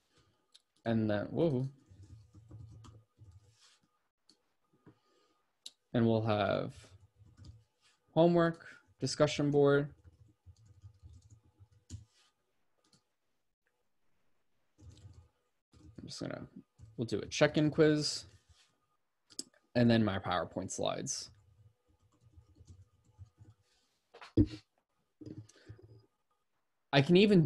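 A man speaks calmly into a microphone, close by, in short phrases with pauses.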